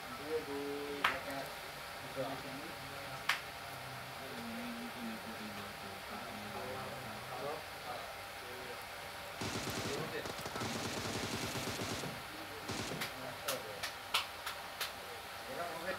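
Gunshots crack in short bursts.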